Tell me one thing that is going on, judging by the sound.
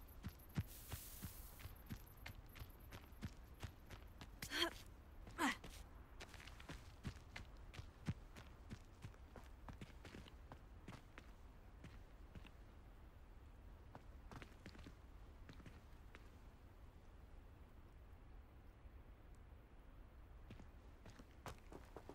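Footsteps crunch through grass and over rock.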